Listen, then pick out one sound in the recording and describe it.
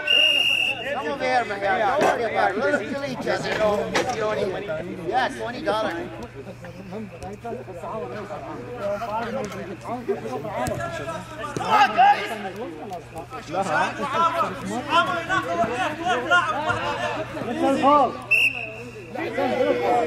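A referee's whistle blows short and sharp.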